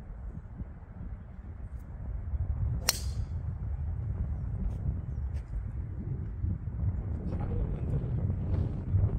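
Wind rumbles across the open ground outdoors.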